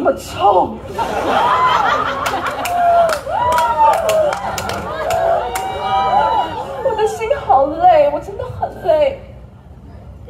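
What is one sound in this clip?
A young woman sings expressively through a microphone, heard through loudspeakers.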